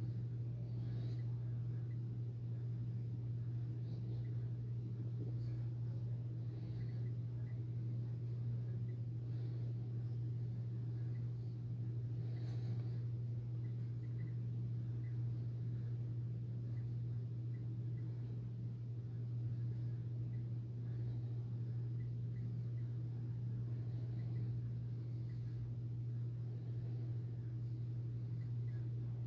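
A radiation meter clicks faintly at irregular intervals.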